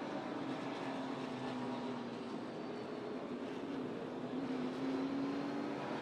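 Wind and rain rush past the car.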